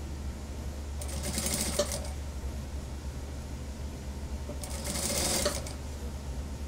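A sewing machine stitches in short bursts.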